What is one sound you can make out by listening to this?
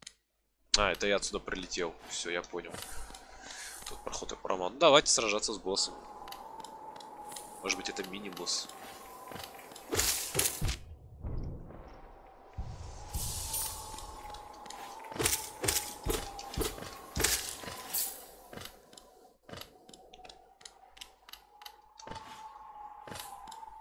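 Sharp sword slashes and thuds from a video game ring out.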